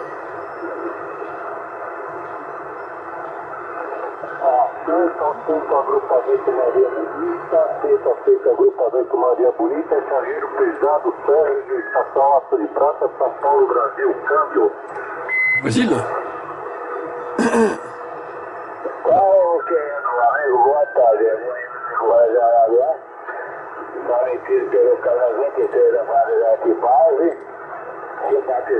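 Radio static hisses steadily through a loudspeaker.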